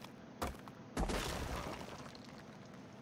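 A pickaxe strikes rock with a crunch.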